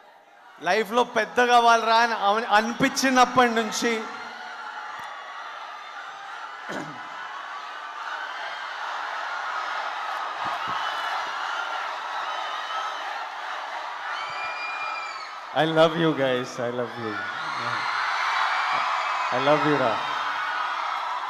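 A young man shouts loudly into a microphone over loudspeakers in a large echoing hall.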